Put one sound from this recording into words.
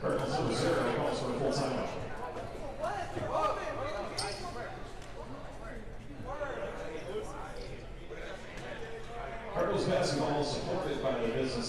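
A crowd chatters in a large echoing gym.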